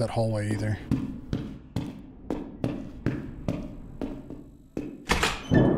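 Footsteps thud steadily on stairs.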